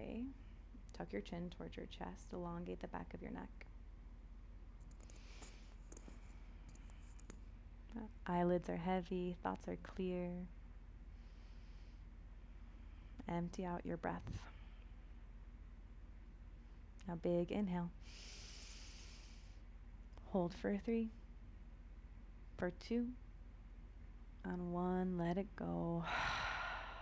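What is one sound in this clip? A woman speaks calmly and softly into a close microphone, with long pauses.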